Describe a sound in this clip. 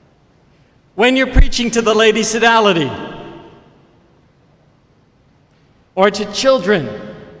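An elderly man chants slowly into a microphone in a large echoing hall.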